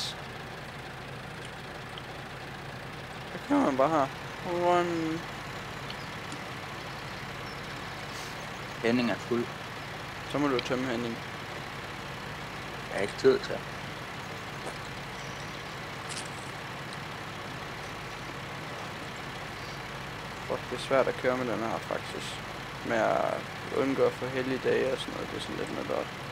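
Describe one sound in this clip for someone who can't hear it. A tractor engine runs steadily with a low hum.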